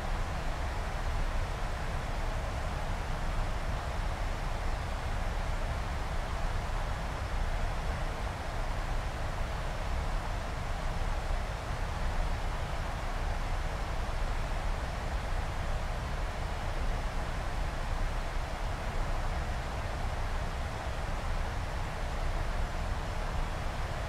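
Air rushes steadily past the cockpit.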